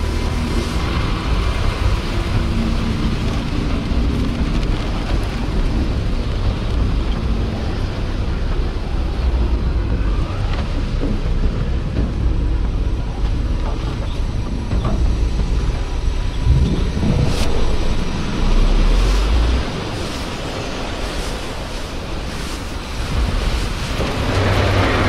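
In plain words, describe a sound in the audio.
Strong wind howls and blows snow about.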